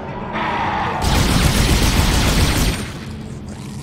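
A weapon fires with a loud, rushing blast.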